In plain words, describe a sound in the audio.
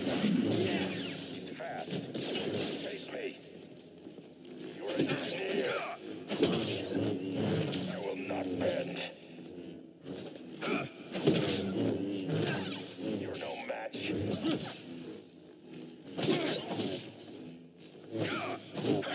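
An energy blade hums and swooshes through the air.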